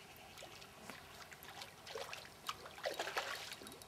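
Water splashes around a wading angler's legs.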